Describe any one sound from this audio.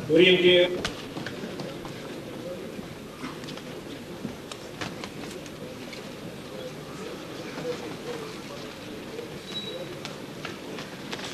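Boxing gloves thud against bodies in quick bursts.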